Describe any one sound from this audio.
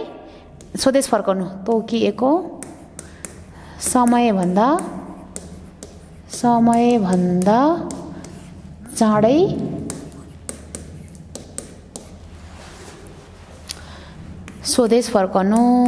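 A woman speaks slowly and clearly in short phrases, close to a microphone.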